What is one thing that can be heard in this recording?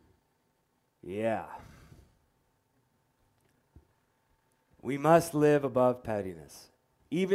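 A man preaches through a microphone, speaking in short bursts with pauses.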